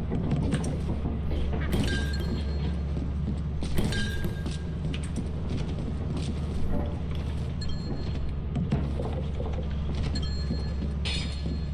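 Glass bottles clink and rattle in a crate.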